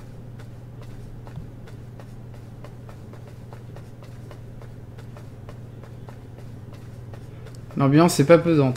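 Light footsteps tap quickly and steadily up stairs.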